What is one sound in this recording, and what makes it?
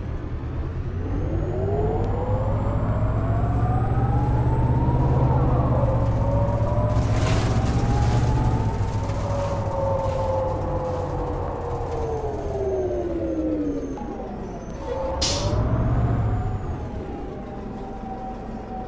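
A bus engine hums and whines as it speeds up and slows down.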